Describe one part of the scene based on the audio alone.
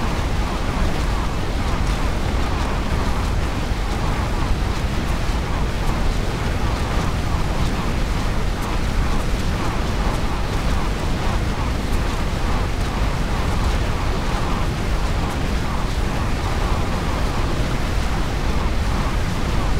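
Game spells crackle and burst in a busy battle.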